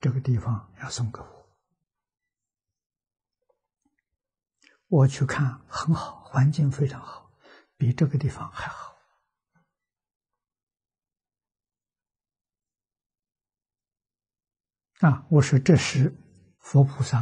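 An elderly man speaks calmly and warmly into a close microphone, with pauses.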